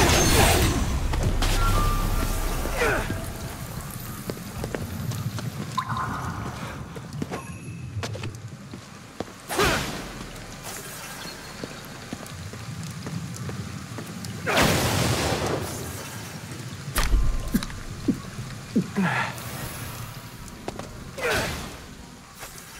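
Energy blasts whoosh and burst in short rushes.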